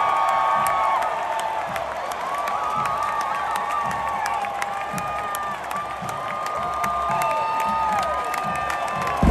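Drums beat in a steady rhythm.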